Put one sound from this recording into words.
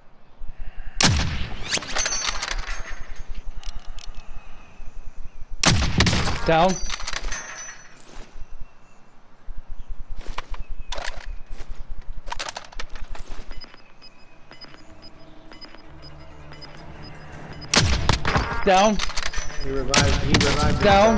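A sniper rifle fires loud, sharp shots that echo briefly.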